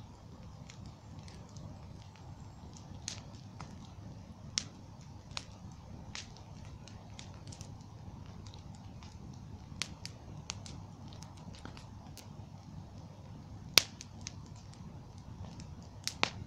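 A wood bonfire crackles and pops.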